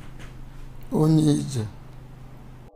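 A man speaks loudly and briefly.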